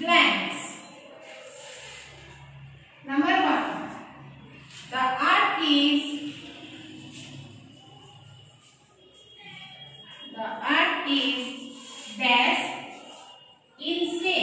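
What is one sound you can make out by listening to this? A woman speaks slowly and clearly, as if dictating, in a slightly echoing room.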